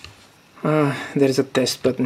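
A plastic cover clicks as a hand turns it.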